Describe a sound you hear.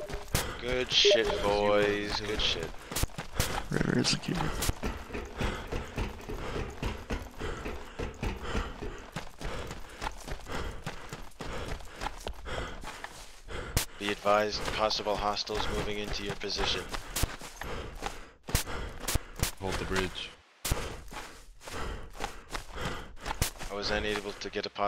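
Footsteps run quickly over dirt and a metal grate.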